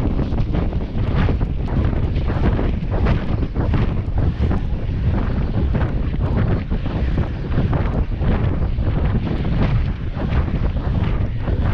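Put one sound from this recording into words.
Wind rumbles loudly against a moving bicycle.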